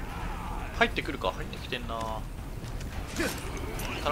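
A man growls and shouts in a hoarse voice.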